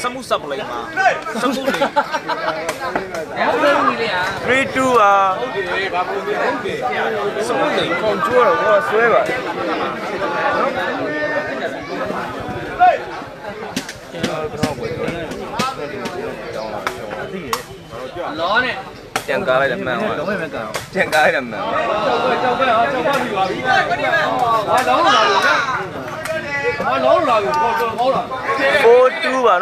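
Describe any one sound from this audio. A crowd of spectators chatters and calls out loudly outdoors.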